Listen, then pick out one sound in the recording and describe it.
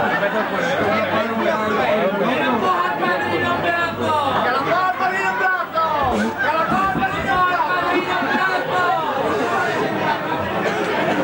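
A dense crowd of men and women talk and shout loudly all around, close by.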